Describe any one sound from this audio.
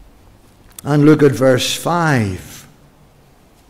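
An elderly man speaks calmly into a microphone in an echoing room.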